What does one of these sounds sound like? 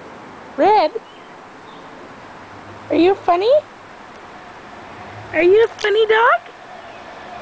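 A puppy whines in short, high, rising and falling cries.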